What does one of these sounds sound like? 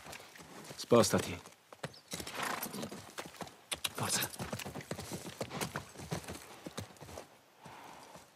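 A horse's hooves clop on hard ground.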